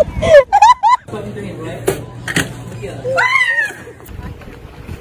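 A woman shrieks and laughs excitedly close by.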